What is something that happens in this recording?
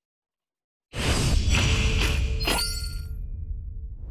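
A victory fanfare plays loudly.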